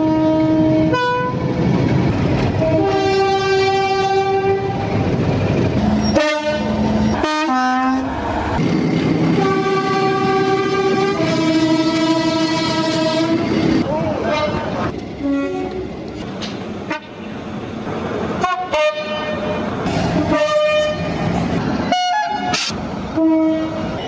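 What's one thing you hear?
A diesel locomotive sounds a two-tone horn in repeated blasts.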